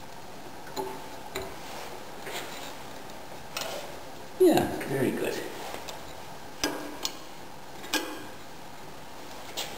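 A metal plate knocks and clinks as it is handled.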